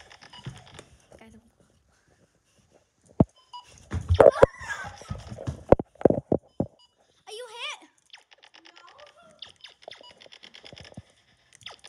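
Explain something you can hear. A young boy talks and shouts playfully close to a phone microphone.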